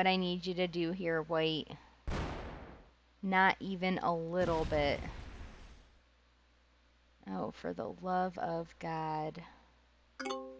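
A young woman talks cheerfully into a close microphone.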